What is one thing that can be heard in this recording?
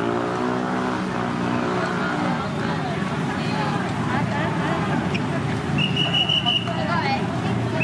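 A crowd of men and women chatters outdoors in a busy street.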